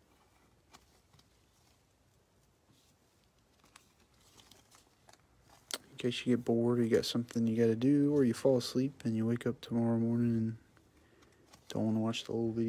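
Plastic card sleeves rustle and crinkle.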